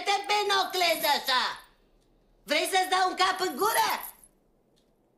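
An elderly woman talks with animation.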